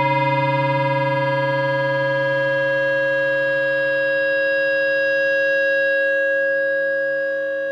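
An electric guitar rings out with a sustained chord that slowly fades.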